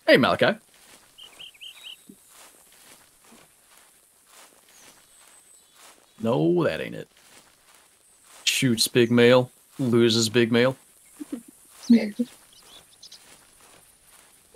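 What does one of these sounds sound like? Footsteps rustle softly through grass and undergrowth.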